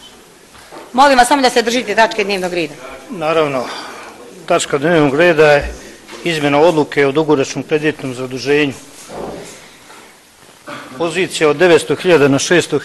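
An elderly man speaks steadily into a microphone, heard through a loudspeaker in an echoing hall.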